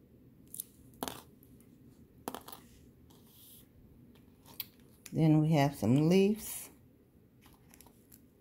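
Small beads click softly against a hard surface.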